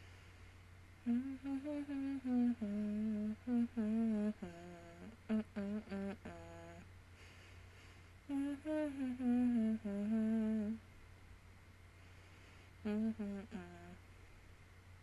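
A young person speaks calmly and close into a microphone, in pauses.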